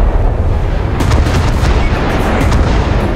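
A ship's big guns fire with heavy booms.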